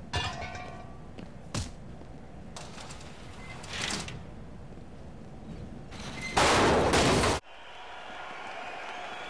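A body slams down hard onto the floor.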